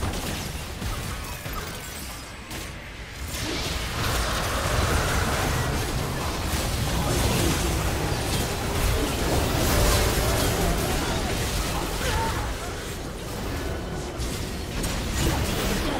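Game spell effects and clashing attacks crackle and boom in a busy fight.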